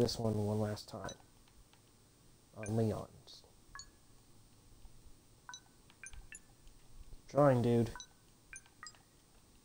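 Soft electronic beeps and clicks sound from a game menu.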